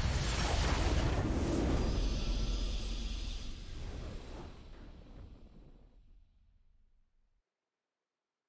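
A loud, booming game victory fanfare plays and slowly fades out.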